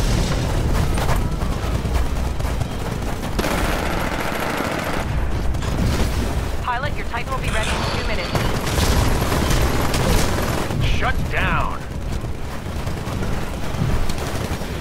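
Video game gunfire rattles over a low rumble.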